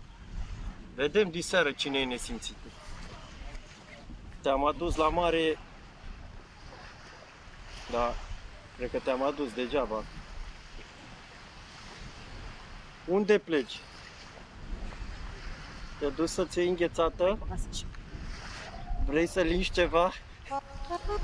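A man talks casually nearby.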